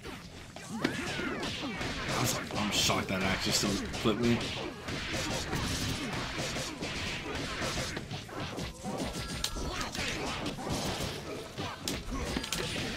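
Rapid punches and slashes thud and crack in quick succession.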